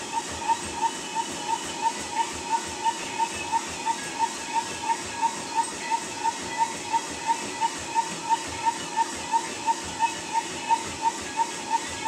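Footsteps thud in a quick, steady rhythm on a treadmill belt.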